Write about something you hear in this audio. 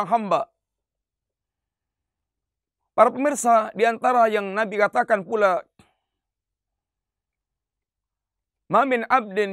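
A man speaks calmly and clearly into a close microphone, in a melodic, chanting voice.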